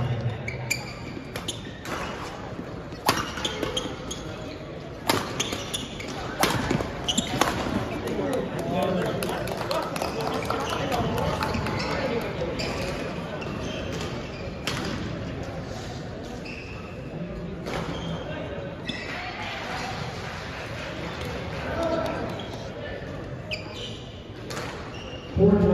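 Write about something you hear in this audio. Rackets smack a shuttlecock in sharp, echoing hits.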